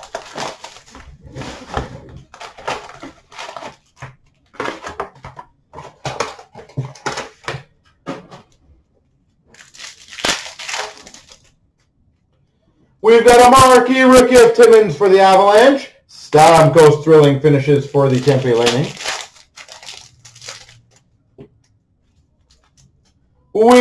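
A foil card pack rustles and crinkles in hands.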